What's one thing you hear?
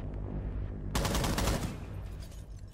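Gunfire rattles in a quick burst.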